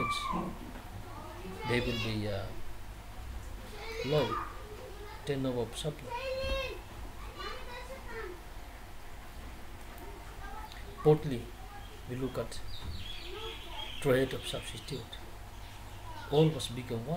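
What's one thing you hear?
A man speaks calmly and slowly into a nearby microphone, with pauses.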